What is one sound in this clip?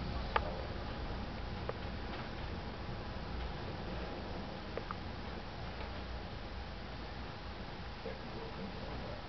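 A dog and a kitten tussle playfully on a soft cushion.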